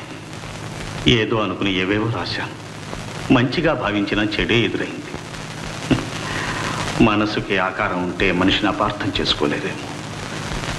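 A young man speaks in a low, serious voice, close by.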